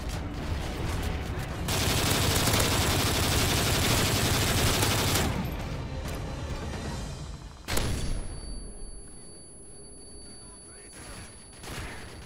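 A rifle's magazine clicks and clatters during a reload.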